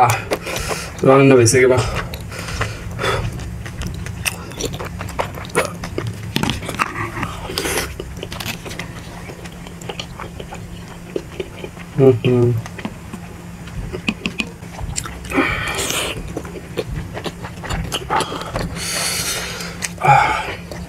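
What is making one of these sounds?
A young man chews and slurps food close to a microphone.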